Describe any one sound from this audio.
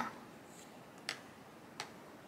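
A pencil is set down on a book with a light tap.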